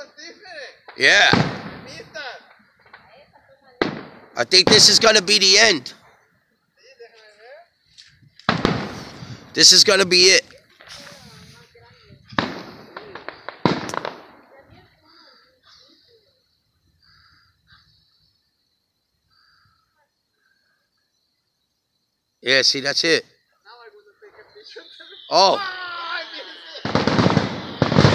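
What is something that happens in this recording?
Fireworks burst with loud booms and crackles.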